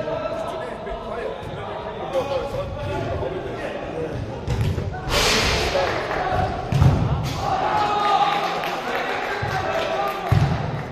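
Young players shout to each other, echoing in a large hall.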